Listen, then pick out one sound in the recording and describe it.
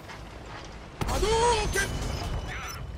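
A tank gun fires with a loud boom.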